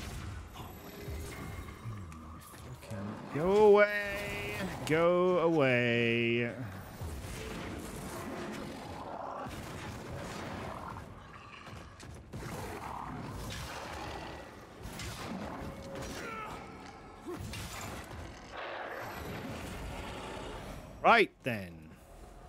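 Game sword clashes and impacts ring out.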